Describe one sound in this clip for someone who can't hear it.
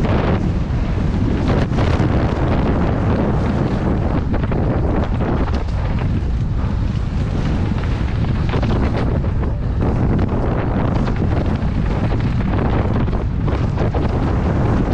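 Bike tyres crunch and rattle over dirt and gravel.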